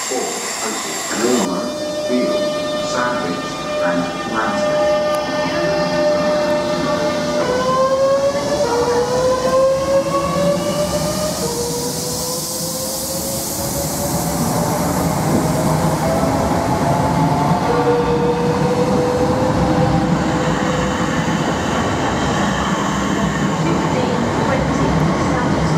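A train rushes past close by with a loud rumble.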